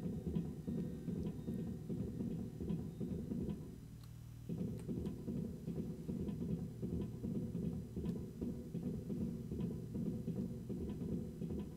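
Footsteps thud quickly and steadily on a wooden floor.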